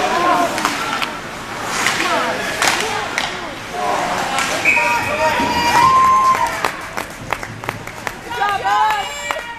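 Hockey skates scrape and carve across ice in an echoing arena.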